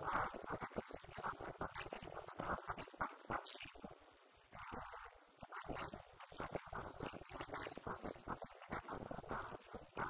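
A young woman speaks calmly into a microphone over a loudspeaker in an echoing room.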